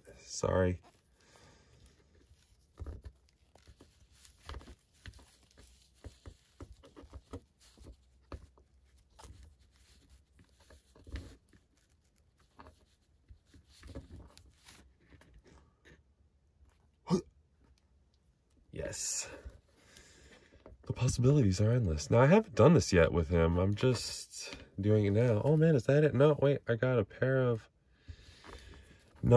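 Small plastic parts click and tap softly as a toy figure is handled.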